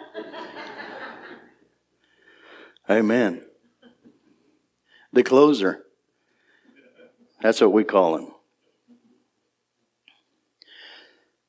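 A man preaches with emphasis through a microphone, speaking in short bursts with pauses.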